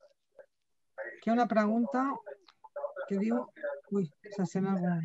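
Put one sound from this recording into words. A middle-aged woman speaks through an online call.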